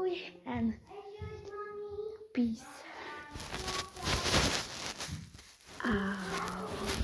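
A girl talks close up, animated and playful.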